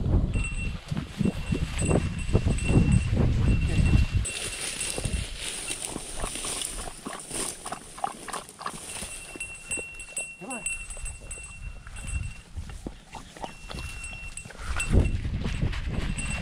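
Dry grass rustles and crunches as a dog pushes through it.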